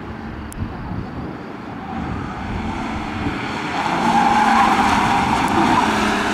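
Tyres squeal on asphalt through a tight turn.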